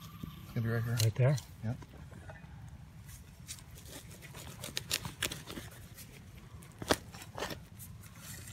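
A digging tool scrapes and stabs into hard dry soil.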